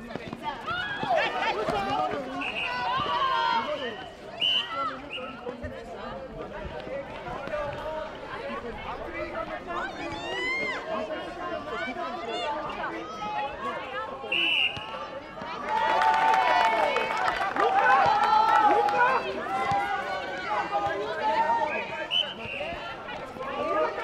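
Young women shout and call out to each other across an outdoor court.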